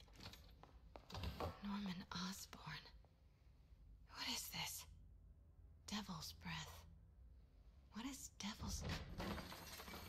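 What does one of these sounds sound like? A young woman speaks quietly and with puzzlement, close by.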